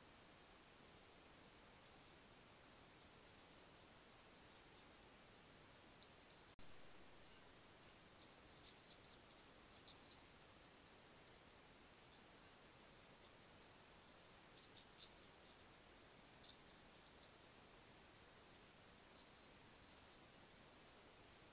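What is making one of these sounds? A hedgehog eats from a dish with soft, faint crunching.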